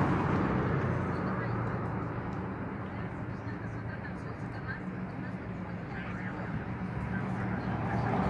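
A wood fire crackles close by.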